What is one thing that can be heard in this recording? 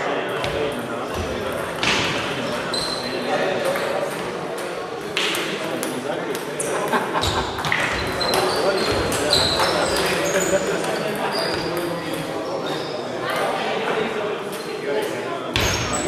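Table tennis balls click rapidly off paddles and tables.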